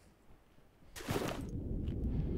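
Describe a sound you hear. A body splashes into water.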